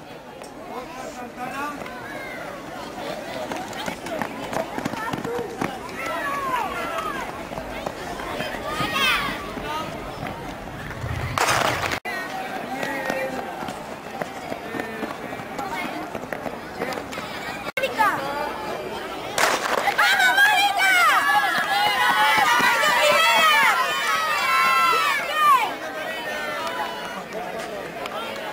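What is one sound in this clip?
A crowd of children shouts and cheers outdoors.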